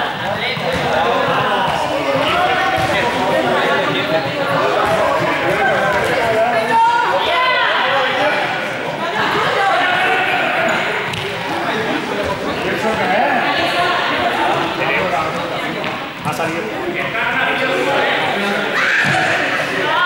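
A man talks with animation in a large echoing hall.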